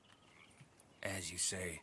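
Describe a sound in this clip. An older man speaks in a rough voice.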